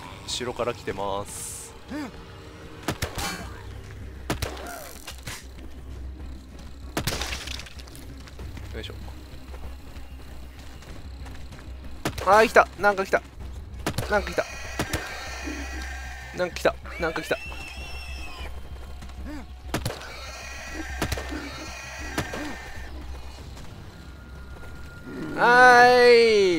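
Zombies groan and growl close by.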